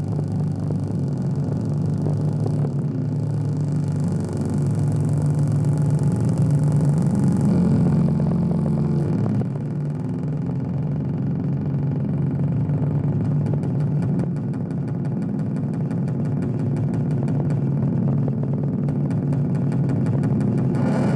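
Droning electronic music plays loudly through speakers, with a deep pulsing hum and rapid ticking.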